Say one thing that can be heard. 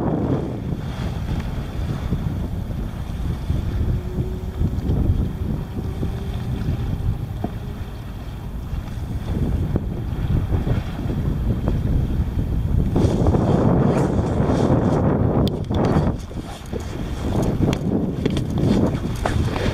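Choppy sea water laps against a kayak hull.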